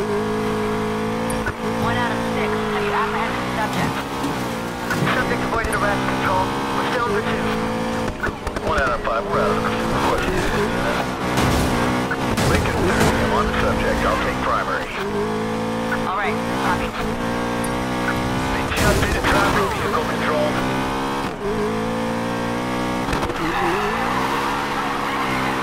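A car engine roars at high revs, rising and falling as it shifts gears.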